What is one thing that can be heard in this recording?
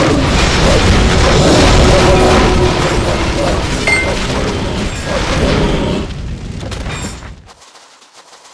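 Fiery spell blasts roar and crackle during a fight.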